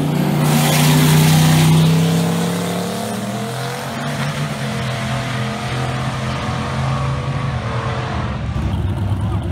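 A race car engine roars loudly as it speeds away and fades into the distance.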